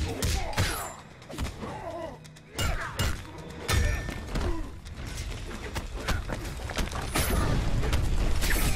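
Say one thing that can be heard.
Fighters grunt and yell as they trade blows.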